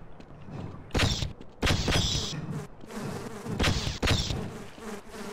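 A creature's energy weapon fires in short crackling bursts.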